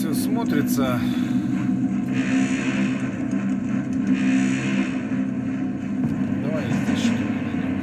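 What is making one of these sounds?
Fingers rub and tap against a hard plastic model.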